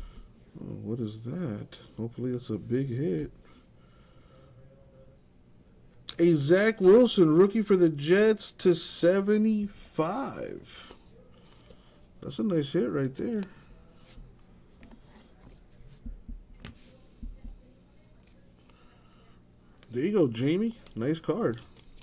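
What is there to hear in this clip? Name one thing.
Trading cards rustle and slide against each other in someone's hands.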